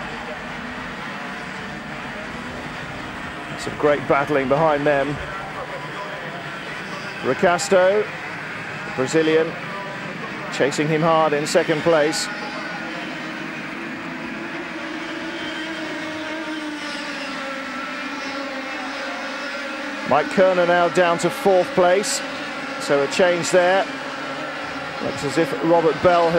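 Kart engines buzz and whine as karts race past.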